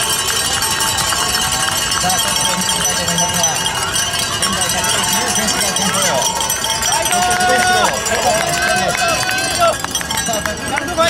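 A crowd of spectators cheers and chatters outdoors.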